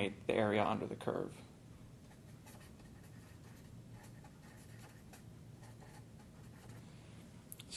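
A marker squeaks across paper.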